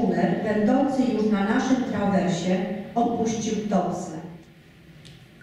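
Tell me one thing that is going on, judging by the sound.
A woman reads out into a microphone.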